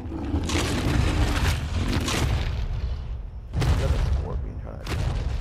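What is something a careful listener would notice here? A large beast growls and snarls.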